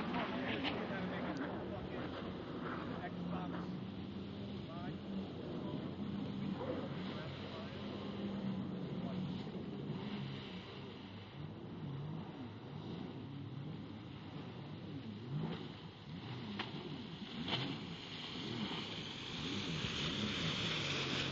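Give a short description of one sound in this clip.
Water splashes and sprays from a jet ski's wake.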